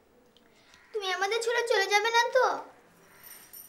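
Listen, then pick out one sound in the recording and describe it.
A young girl speaks excitedly.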